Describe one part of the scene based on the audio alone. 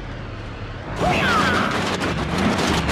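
A bus engine roars as the bus pulls up close.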